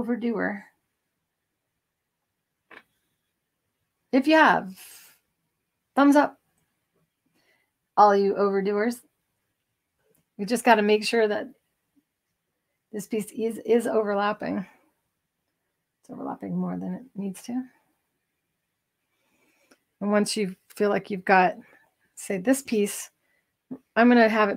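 A woman speaks calmly and clearly, close by, with short pauses.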